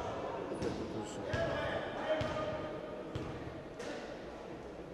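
A basketball bounces on a hard court in an echoing hall.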